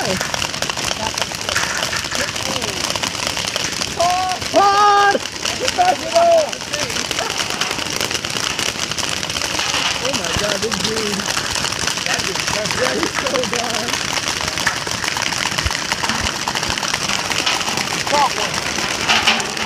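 Paintball markers pop in quick bursts.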